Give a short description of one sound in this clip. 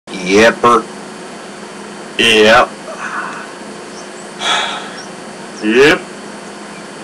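Middle-aged men speak in short, drawling lines, heard through a television speaker.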